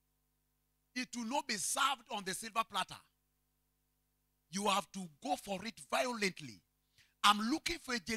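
A man preaches with animation through a microphone, in bursts with pauses.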